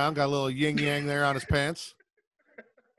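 A man laughs loudly through a headset microphone.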